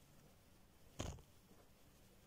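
A knife taps on a wooden board.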